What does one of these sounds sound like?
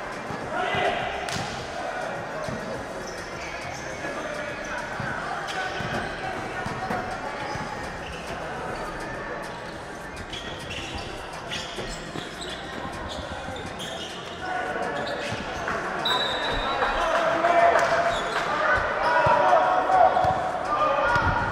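A crowd of men shout and call out across the hall.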